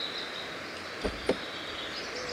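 A car door clicks open with a dull thud.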